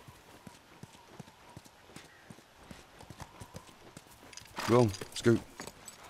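A horse's hooves clop as it walks.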